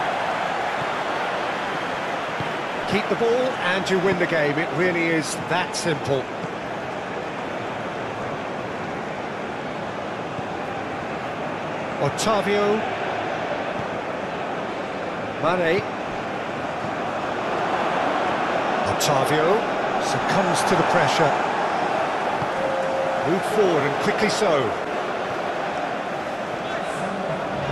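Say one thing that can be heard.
A large crowd murmurs and roars steadily in a big stadium.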